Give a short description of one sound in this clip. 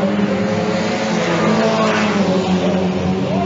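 A car speeds past close by with a rushing roar.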